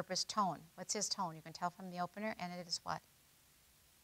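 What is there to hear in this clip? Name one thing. A middle-aged woman speaks calmly into a microphone in a large hall.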